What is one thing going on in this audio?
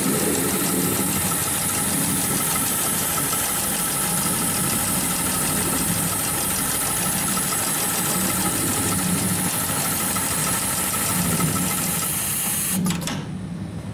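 An industrial sewing machine stitches with a fast, steady whirring and tapping.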